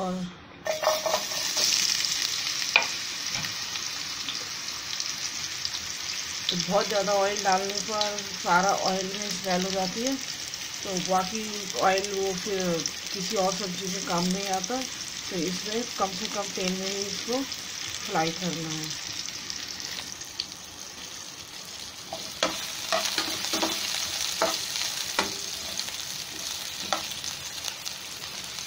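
Food sizzles in hot oil in a frying pan.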